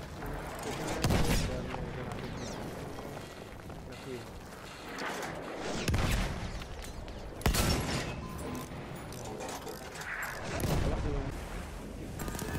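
Explosions roar and crackle close by.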